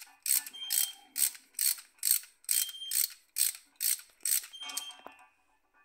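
A ratchet wrench clicks rapidly in quick bursts.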